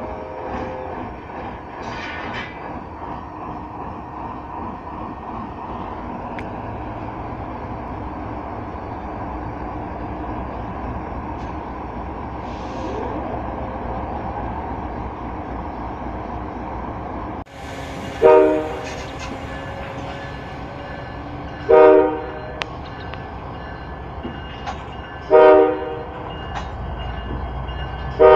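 A diesel locomotive rumbles steadily as it rolls past close by.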